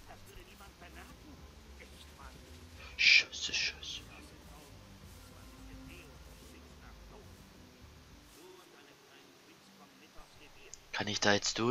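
Leafy plants rustle softly as someone creeps through them.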